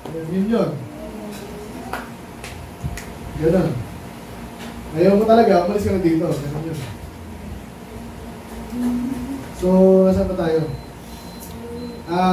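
A man preaches through a microphone in bursts, with long pauses, in a room with some echo.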